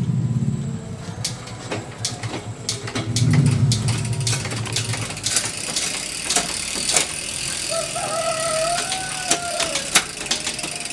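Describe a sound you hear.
A bicycle's freewheel ticks rapidly as the wheel coasts.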